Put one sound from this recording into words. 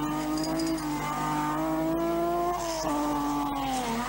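Tyres skid and spray gravel.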